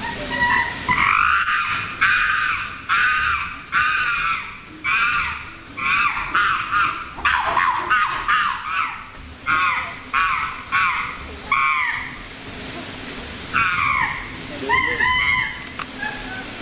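A chimpanzee hoots and screams in rising, rapid calls.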